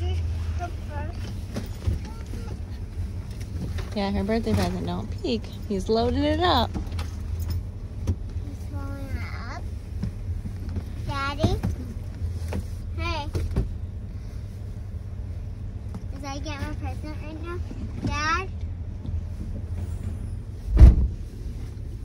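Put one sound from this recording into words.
A vehicle's engine hums low and steadily.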